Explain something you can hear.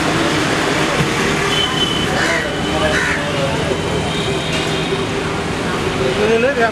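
Street traffic and motorbikes rumble steadily nearby.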